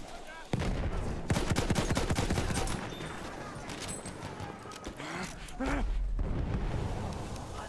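Heavy explosions boom and rumble nearby.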